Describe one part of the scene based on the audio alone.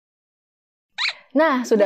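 A young woman speaks clearly and brightly into a microphone, close by.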